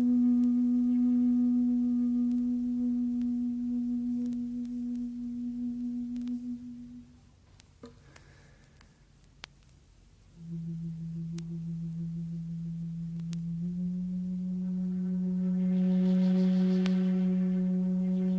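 A bamboo flute plays long, slow held notes, pausing before a louder rising phrase.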